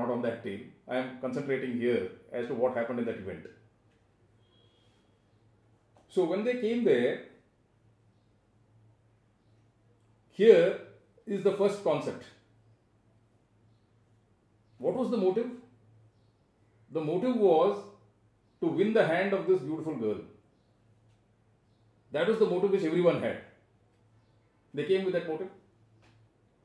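An older man speaks with animation, close by, in short bursts with pauses.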